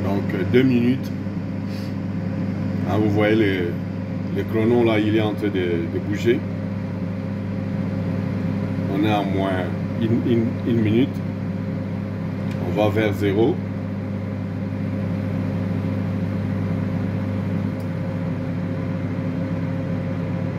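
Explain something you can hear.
A microwave oven hums steadily as it runs.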